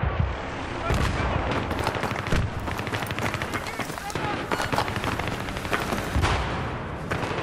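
Explosions boom heavily.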